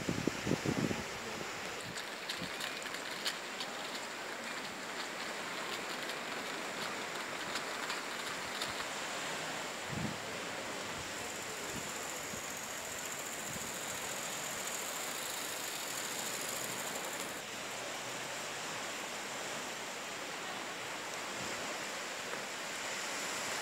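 Small waves break gently on a sandy beach.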